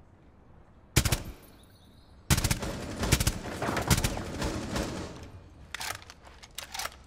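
Gunshots fire in quick bursts, ringing sharply.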